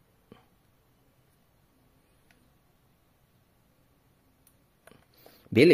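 A glue gun trigger clicks softly now and then.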